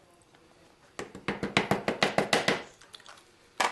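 A plastic container knocks rapidly against a metal tray.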